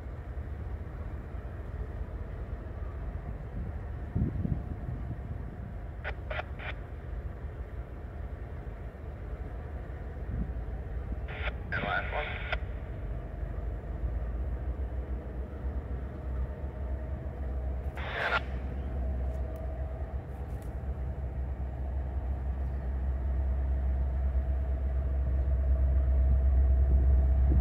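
A diesel locomotive rumbles in the distance and grows louder as it approaches.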